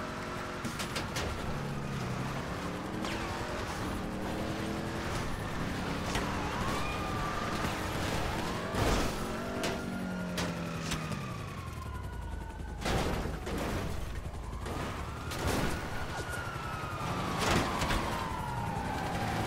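A car engine revs hard and shifts through gears.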